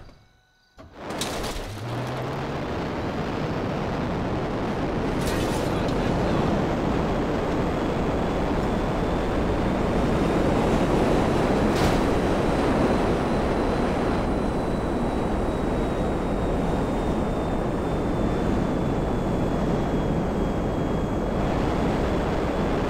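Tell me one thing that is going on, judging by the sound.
A jet engine roars loudly and steadily.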